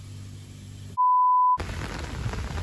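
A steady high beep sounds briefly.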